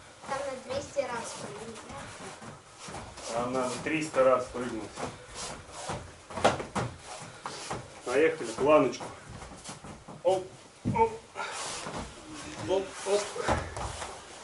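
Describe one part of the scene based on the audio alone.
An adult coach calls out instructions to a training group.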